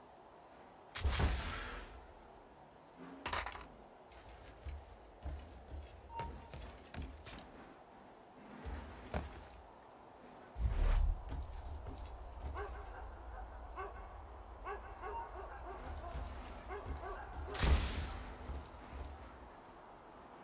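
Footsteps thump and scrape on roof tiles.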